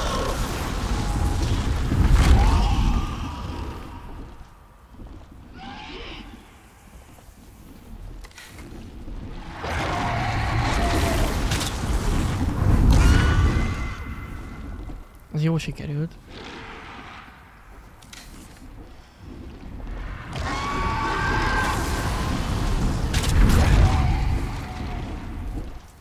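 Dragon fire roars and crackles in loud bursts.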